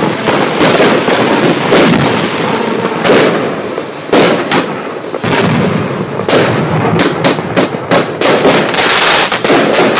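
Firework rockets whistle as they launch.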